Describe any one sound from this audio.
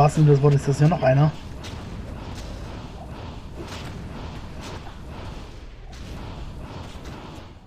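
Fiery blasts burst and crackle in short bursts.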